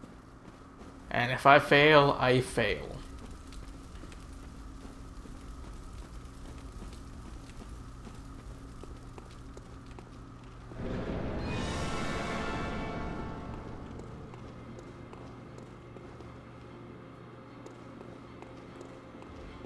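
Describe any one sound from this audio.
Footsteps run over stone and gravel.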